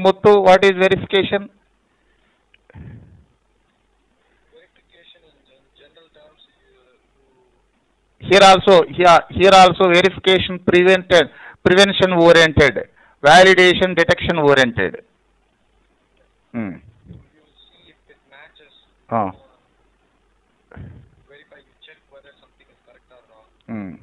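A man speaks calmly into a microphone, pausing between phrases.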